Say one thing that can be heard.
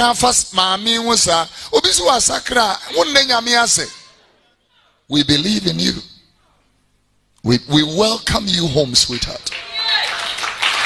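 A man preaches loudly into a microphone with animation.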